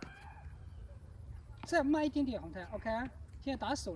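A tennis racket strikes a ball with a sharp pop.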